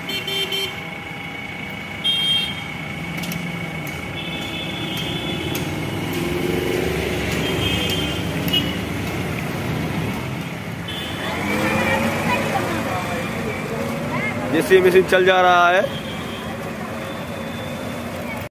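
A backhoe engine rumbles steadily nearby.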